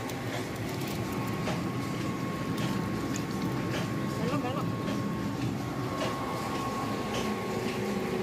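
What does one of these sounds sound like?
Fish flap and slap against each other in shallow water.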